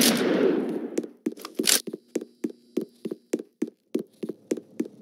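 Rapid gunshots crack in a fast burst.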